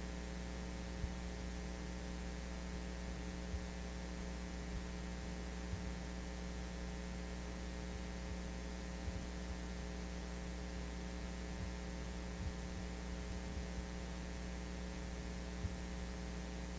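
Small objects knock and thump softly on a table.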